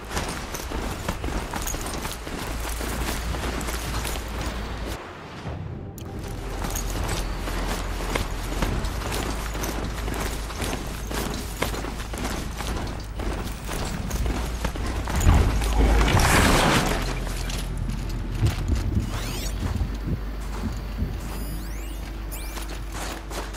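Wind blows steadily through snowy woods.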